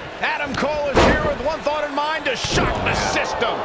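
A wrestler's body slams heavily onto the ring mat.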